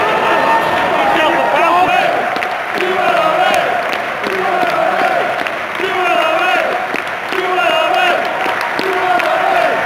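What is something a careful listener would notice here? A large crowd sings a chant together in an open stadium.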